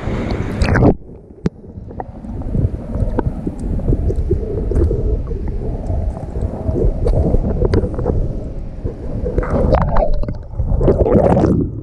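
Muffled underwater rumbling and bubbling goes on.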